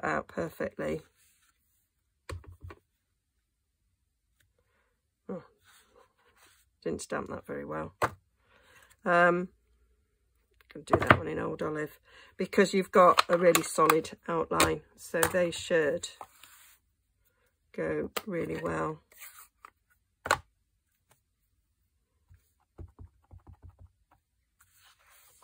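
A rubber stamp presses down onto paper.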